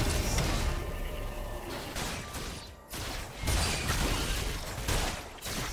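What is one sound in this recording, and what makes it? Video game combat effects clash and crackle in quick bursts.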